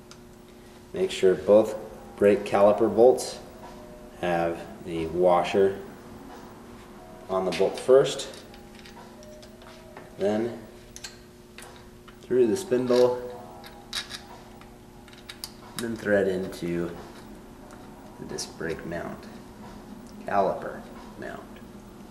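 A man talks calmly close by, in short phrases.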